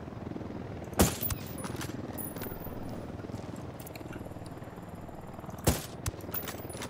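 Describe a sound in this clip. A suppressed rifle fires a sharp shot.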